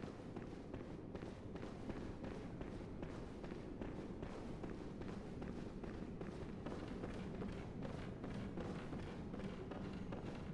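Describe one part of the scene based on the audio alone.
Footsteps run quickly on stone and wooden stairs.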